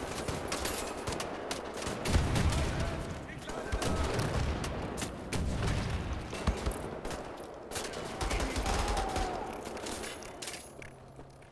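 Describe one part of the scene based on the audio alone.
Guns fire in rapid bursts with loud bangs.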